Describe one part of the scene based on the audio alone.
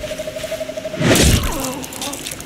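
A heavy blow lands with a dull thud.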